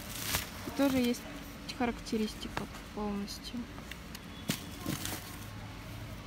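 A paper seed packet rustles as it is handled.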